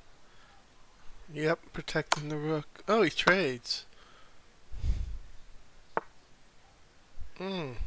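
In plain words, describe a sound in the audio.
A short click sounds as a chess piece is moved.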